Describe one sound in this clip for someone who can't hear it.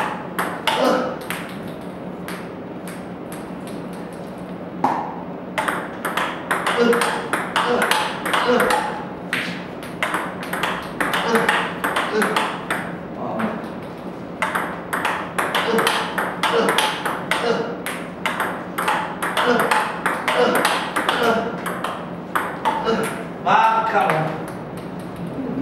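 A table tennis ball clicks sharply off a paddle and table in quick rallies.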